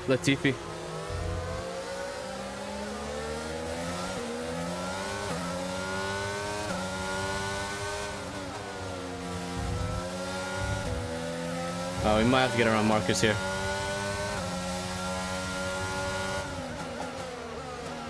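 A racing car engine whines at high revs, rising and dropping in pitch with each gear change.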